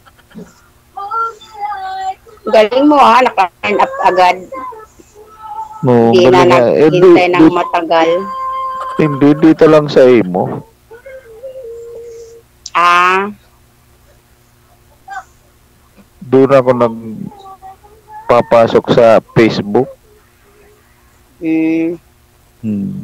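A middle-aged woman talks and laughs over an online call.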